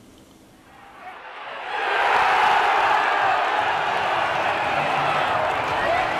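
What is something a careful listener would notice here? A stadium crowd murmurs and cheers in the open air.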